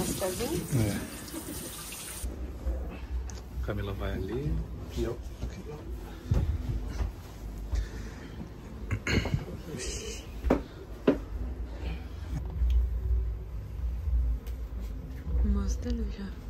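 Women talk quietly nearby.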